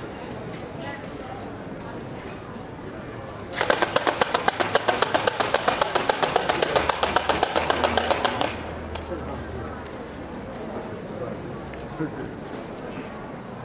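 A crowd murmurs quietly outdoors.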